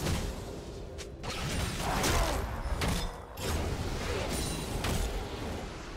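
Game characters clash with rapid hits.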